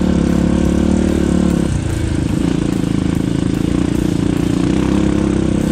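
A dirt bike engine buzzes loudly and steadily, dipping briefly as the rider shifts.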